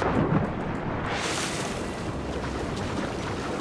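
Water swishes steadily around a swimmer.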